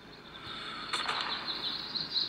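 A rifle shot cracks.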